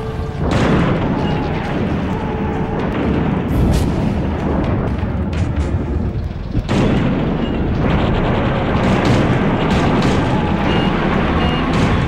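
A vehicle engine roars steadily.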